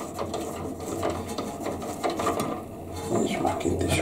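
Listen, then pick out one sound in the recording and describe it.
A small metal part scrapes and clicks as it is unscrewed from a fitting.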